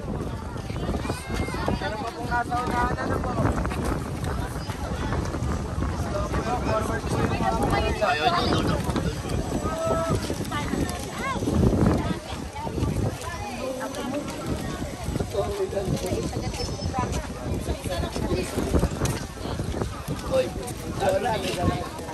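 A crowd of women and children chatter and call out close by, outdoors.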